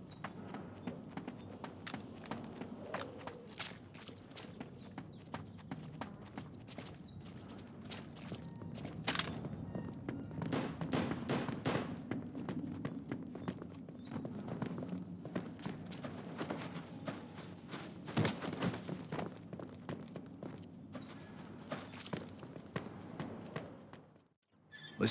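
Gunshots crack repeatedly in quick bursts.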